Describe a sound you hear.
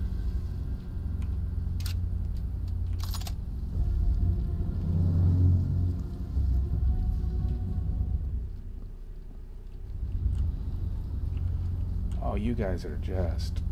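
Wind rumbles low and steady outdoors.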